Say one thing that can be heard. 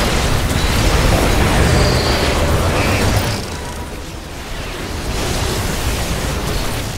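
Futuristic weapons fire in rapid, crackling bursts.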